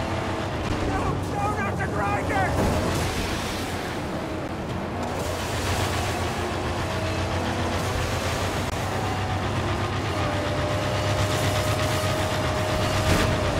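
Flamethrowers blast with a rushing roar.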